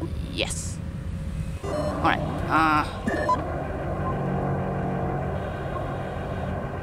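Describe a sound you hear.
A low electronic drone hums steadily.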